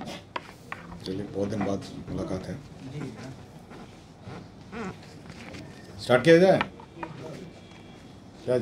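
A middle-aged man speaks calmly into microphones nearby.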